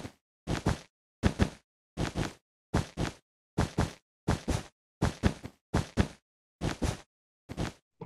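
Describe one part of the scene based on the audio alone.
Blocks are placed one after another with quick, regular thuds.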